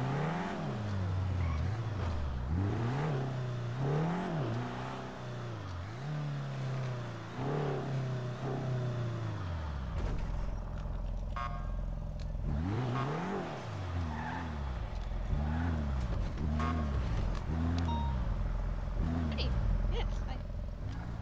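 A car engine revs up and down as a car drives and turns.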